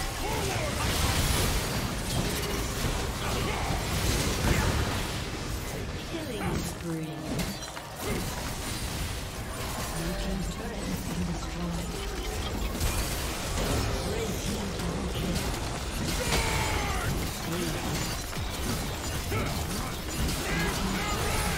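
Fantasy battle sound effects of spells and strikes crackle and boom.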